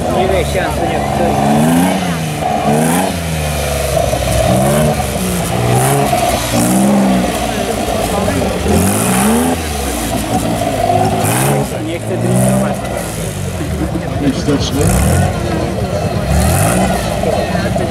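A small engine revs up and down loudly.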